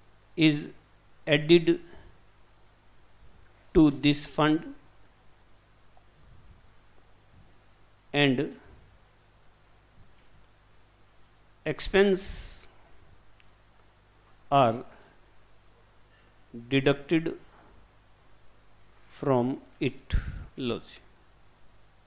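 A man speaks calmly in short phrases with pauses, close through a clip-on microphone.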